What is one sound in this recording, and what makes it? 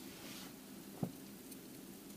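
A small metal pot clinks on a grill.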